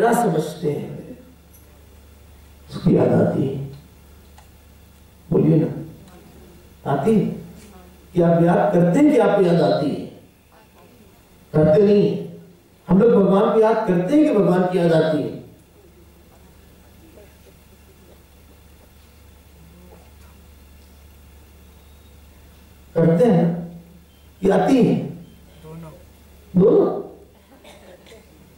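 A man speaks calmly into a microphone in short phrases with long pauses.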